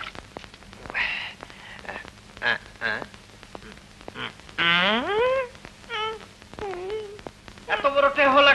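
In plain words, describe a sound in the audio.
A young man cries out in distress.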